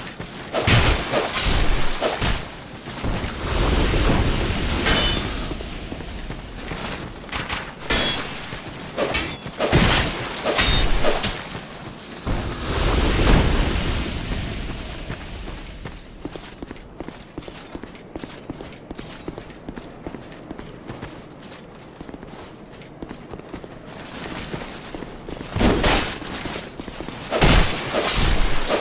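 Sword blows clang and thud in a fight.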